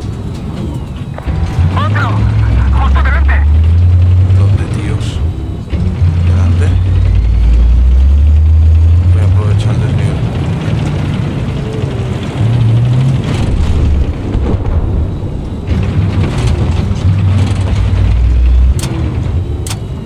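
A heavy tank engine rumbles and drones steadily, rising and falling in pitch.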